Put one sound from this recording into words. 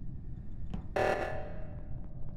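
An alarm blares from a game.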